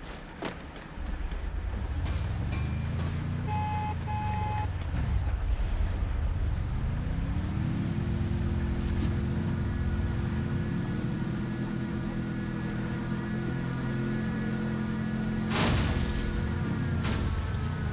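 A vehicle engine revs and rumbles as it drives over rough ground.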